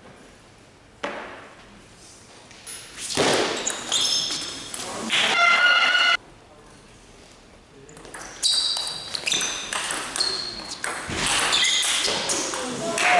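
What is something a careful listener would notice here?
A table tennis ball clicks sharply against paddles and the table.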